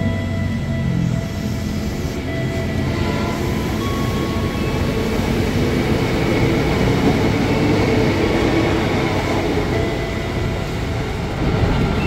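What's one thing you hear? A train rumbles past along the tracks.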